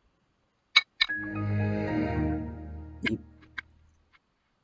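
A computer plays a short shutdown chime that fades away.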